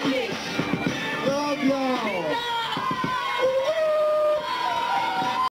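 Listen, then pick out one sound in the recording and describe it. A young man raps into a microphone through loudspeakers.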